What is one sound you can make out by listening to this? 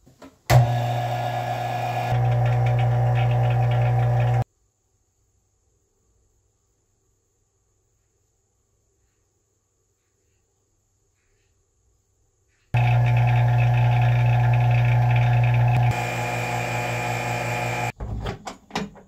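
A vacuum pump hums steadily.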